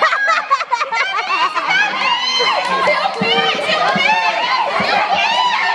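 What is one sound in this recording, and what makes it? Young children shout and laugh excitedly nearby.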